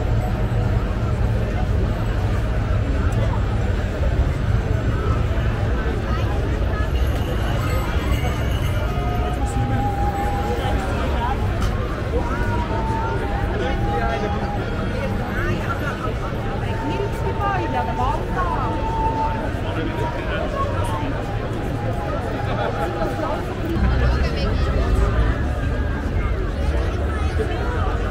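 A large crowd of men and women chatters and calls out all around outdoors.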